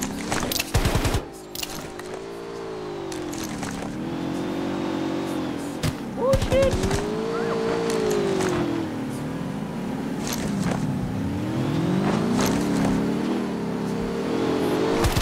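A vehicle engine drones, rising and falling in pitch.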